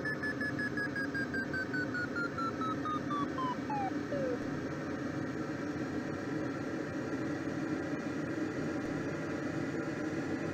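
Wind rushes steadily past a glider's cockpit.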